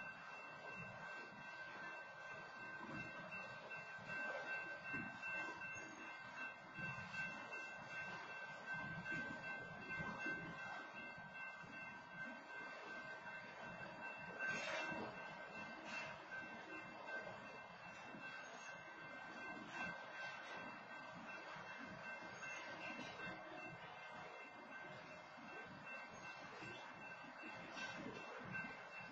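A long freight train rumbles and clatters past nearby.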